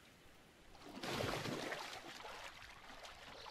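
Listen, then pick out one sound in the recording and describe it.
Water splashes as a game character swims.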